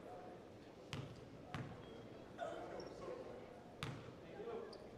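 A basketball bounces on a hard court floor, echoing in a large hall.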